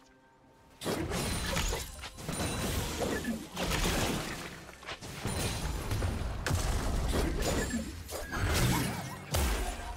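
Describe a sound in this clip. Magic spells whoosh, crackle and burst in a fast fight.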